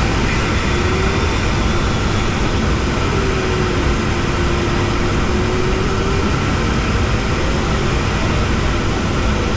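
Air rushes loudly and steadily past a glider's canopy.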